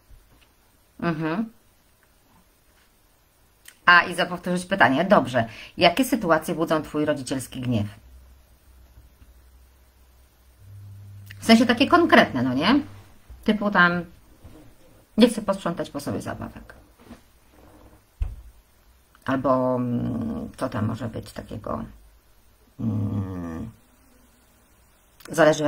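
A woman speaks close into a microphone, calmly and in short bursts with pauses.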